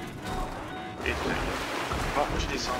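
A car splashes into water.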